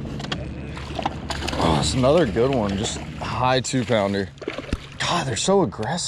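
A fish thrashes and splashes at the water's surface.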